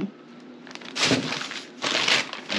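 Paper crackles as it is unfolded.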